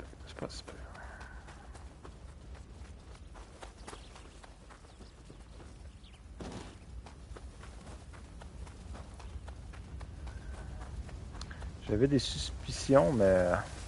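Footsteps crunch softly on the ground.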